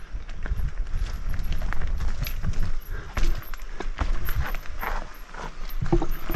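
A bicycle frame rattles and clanks over bumps.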